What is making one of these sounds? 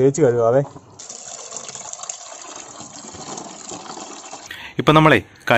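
Water pours from a tap into a tub of fish.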